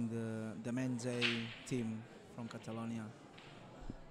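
A cue strikes a pool ball sharply.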